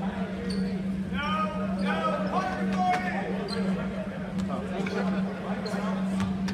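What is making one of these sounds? Spectators talk and call out in a large echoing gym.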